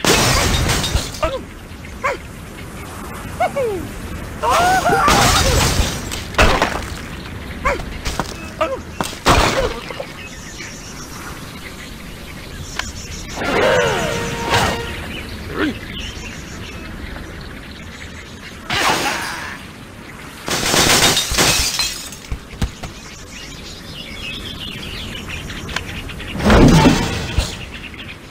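Cartoon birds squawk and chatter.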